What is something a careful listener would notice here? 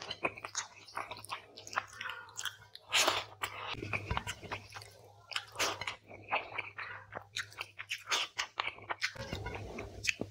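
Fingers squelch and squish through wet, saucy food close up.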